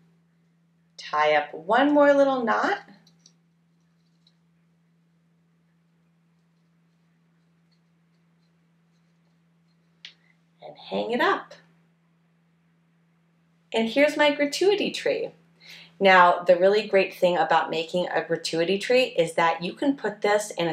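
A young woman speaks calmly and warmly, close by, in bursts with pauses.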